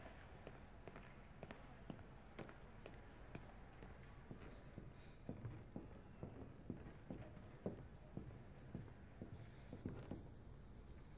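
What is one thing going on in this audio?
Footsteps tap softly across a wooden floor.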